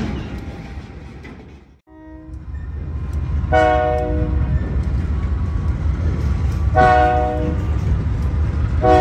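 A diesel locomotive engine rumbles steadily nearby.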